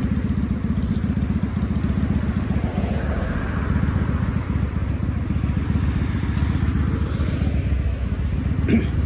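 Cars drive past on a road nearby.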